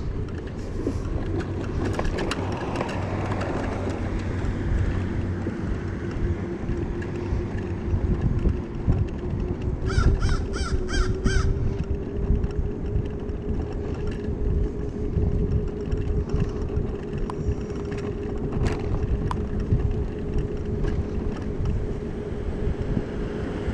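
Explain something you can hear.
A small engine hums steadily.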